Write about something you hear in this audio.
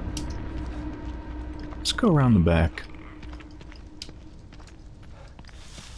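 Footsteps rustle softly through grass and leaves.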